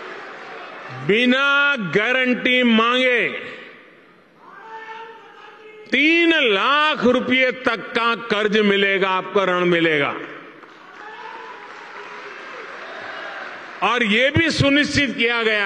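An elderly man speaks emphatically into a microphone, heard through loudspeakers.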